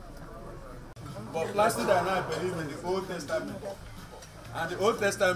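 An elderly man speaks into a microphone through loudspeakers.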